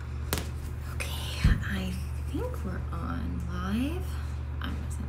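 A young woman talks casually and close by.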